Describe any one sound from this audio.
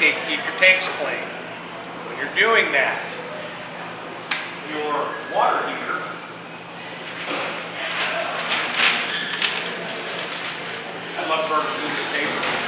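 A middle-aged man speaks to a small audience, heard through a microphone.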